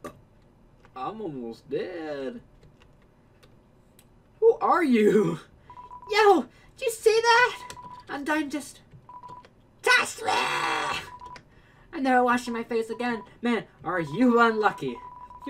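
A young man talks and laughs with animation close to a microphone.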